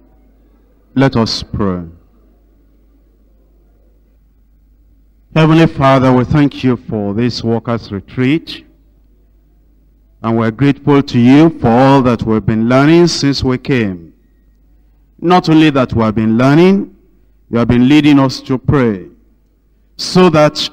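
A man speaks calmly and with emphasis, close to a microphone.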